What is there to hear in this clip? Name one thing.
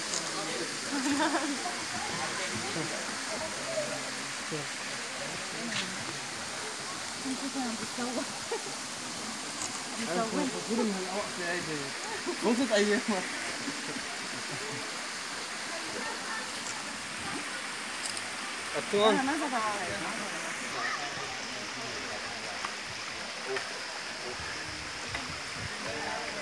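Children and adults talk and call out nearby outdoors.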